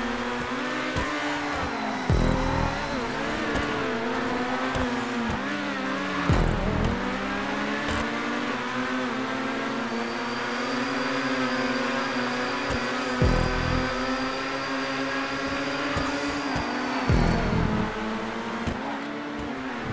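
A racing car engine roars steadily at high revs.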